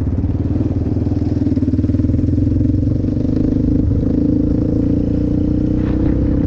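A quad bike engine drones steadily at close range.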